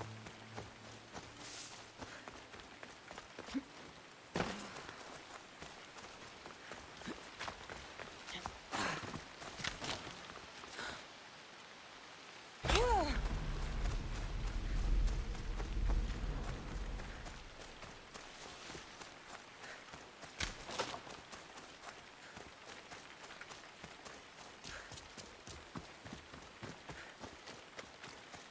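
Footsteps crunch and rustle through dry leaves.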